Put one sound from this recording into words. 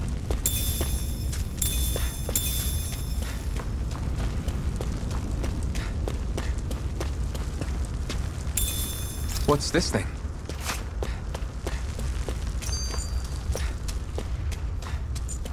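Footsteps crunch steadily on dry dirt.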